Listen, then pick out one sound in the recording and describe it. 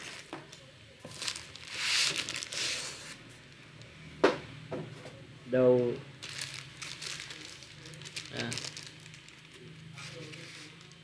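Plastic wrapping crinkles and rustles in hands.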